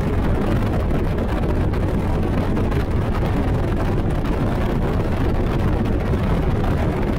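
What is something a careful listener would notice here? Wind buffets loudly, as if blowing past a fast-moving boat.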